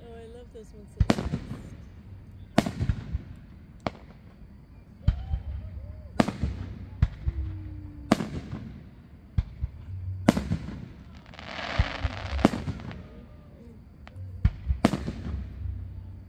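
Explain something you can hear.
Fireworks burst with loud booms that echo outdoors.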